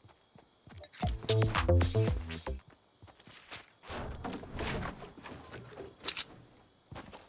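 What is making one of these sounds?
Building pieces snap into place with hard clunks.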